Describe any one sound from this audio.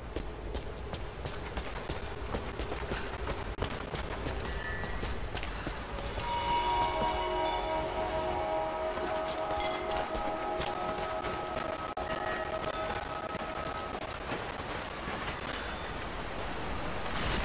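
Footsteps crunch on stone and gravel.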